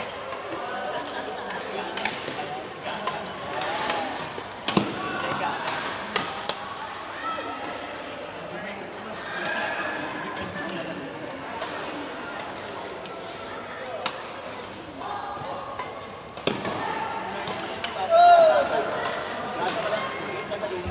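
Shuttlecocks are struck with rackets in sharp pops.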